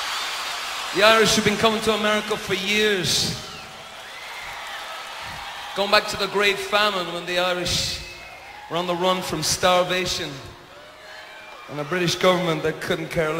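A man speaks slowly and with feeling through a microphone and loudspeakers in a large echoing hall.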